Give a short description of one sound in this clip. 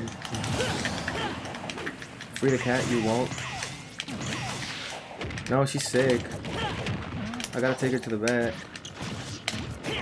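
Video game fighting sounds clash and whoosh with sharp hits.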